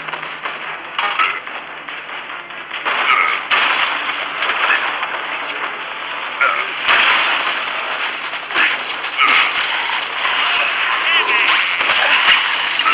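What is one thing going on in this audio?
Game sound effects crash and smash repeatedly.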